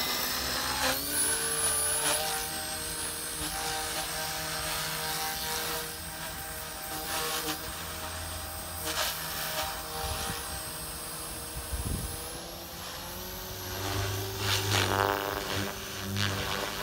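A model helicopter hums and buzzes steadily as it flies nearby.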